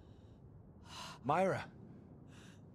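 A woman calls out urgently.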